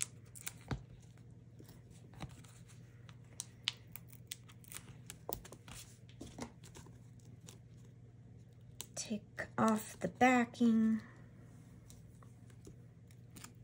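Paper rustles and taps softly as hands handle it.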